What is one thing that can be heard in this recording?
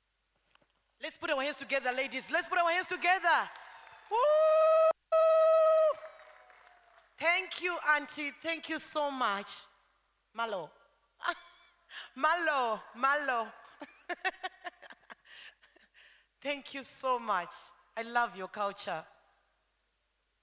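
Women sing together nearby in a large echoing hall.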